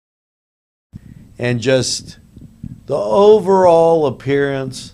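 A middle-aged man speaks close into a handheld microphone.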